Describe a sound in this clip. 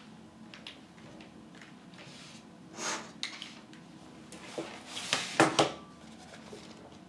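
Plastic clatters and slides as a laptop is moved.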